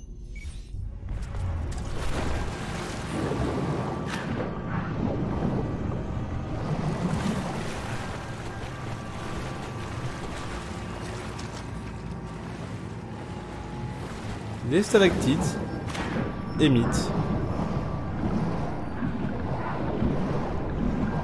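Water splashes as a swimmer moves through it.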